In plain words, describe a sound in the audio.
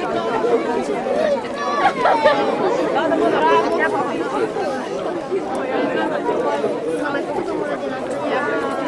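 A crowd of men and women chatter outdoors.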